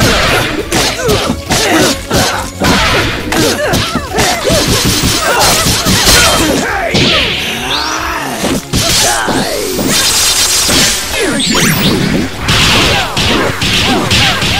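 Fighting-game hits land in quick, sharp bursts.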